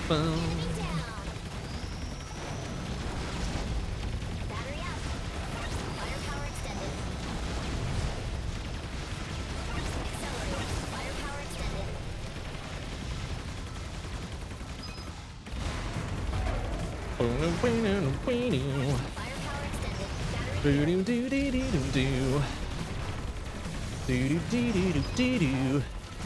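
Video game blasts and explosions crackle rapidly.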